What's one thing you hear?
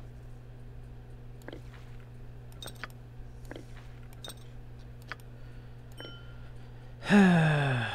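Soft clicks sound as menu items are selected.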